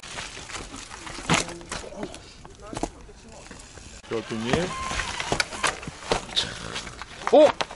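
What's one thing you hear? Mountain bike tyres crunch and bump over rocky dirt.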